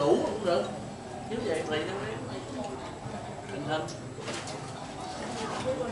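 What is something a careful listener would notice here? Several men talk and chat nearby.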